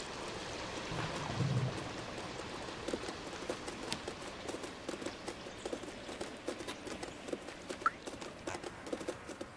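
A cat's paws patter on wooden planks.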